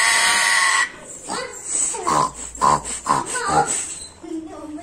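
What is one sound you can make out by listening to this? A parrot chatters and whistles in short rising calls.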